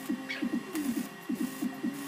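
An arc welder crackles and sizzles.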